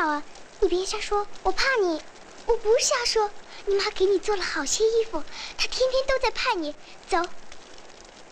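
A young girl speaks softly and earnestly nearby.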